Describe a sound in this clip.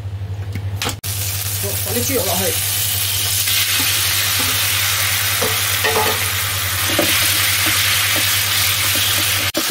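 Meat sizzles loudly in hot oil.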